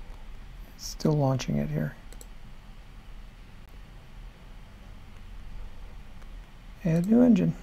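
A middle-aged man speaks calmly into a close microphone.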